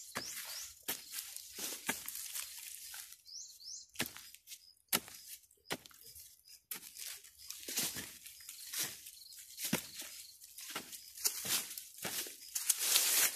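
A pickaxe chops repeatedly into dry earth and roots.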